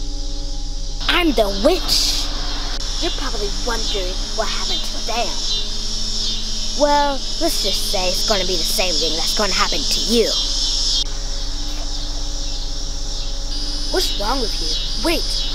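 A young girl sings.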